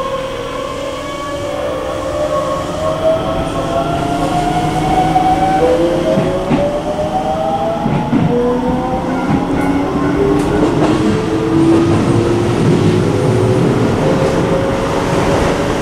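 An electric train motor whines, its pitch sliding up and down.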